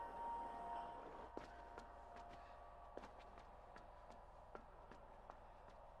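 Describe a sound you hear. Small footsteps tap on a metal floor.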